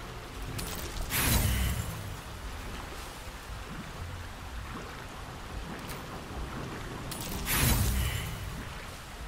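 A game die rolls with a magical whoosh.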